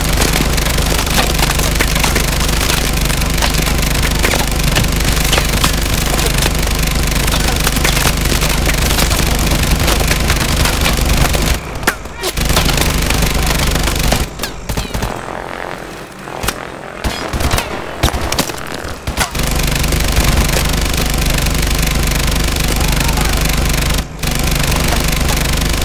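Rapid gunfire blasts in quick bursts.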